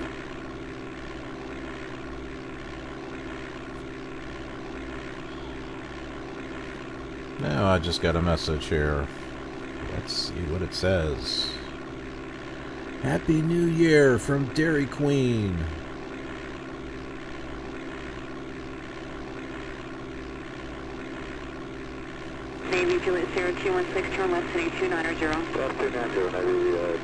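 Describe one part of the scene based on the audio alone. A light aircraft engine drones steadily.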